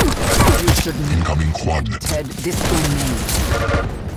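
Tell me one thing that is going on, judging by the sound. Rockets explode with deep booms.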